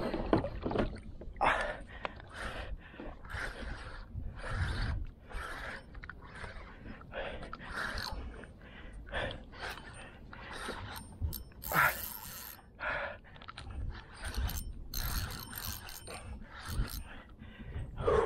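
Water laps gently against the side of a small boat.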